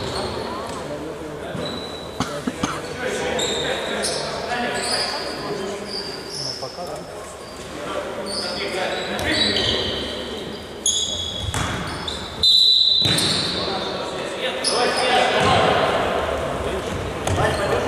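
Sneakers squeak sharply on a hard indoor floor.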